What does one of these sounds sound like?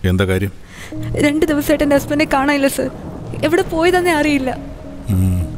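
A woman speaks with irritation, close by.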